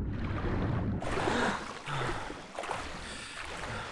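Water splashes softly as a swimmer strokes at the surface.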